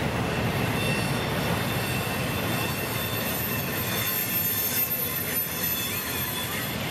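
A freight train rumbles steadily past, its wheels clattering on the rails.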